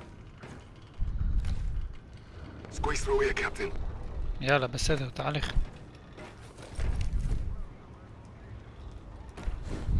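Heavy footsteps thud on a metal floor.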